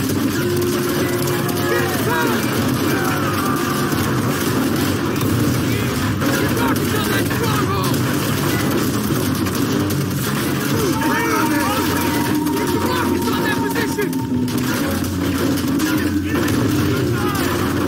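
Men shout orders loudly.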